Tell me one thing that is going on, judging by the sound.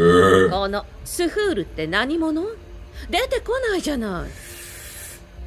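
A woman speaks, heard through a loudspeaker.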